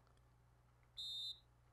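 An electronic countdown tone beeps once.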